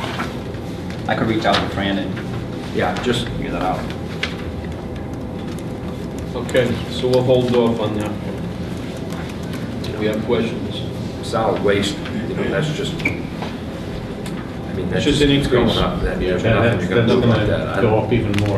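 A man speaks calmly at a distance in a room with a slight echo.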